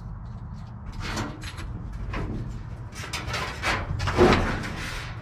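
Wires rustle and clatter as they are handled nearby.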